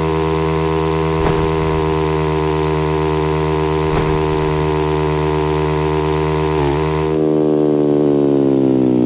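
A motorcycle engine drones steadily at high revs.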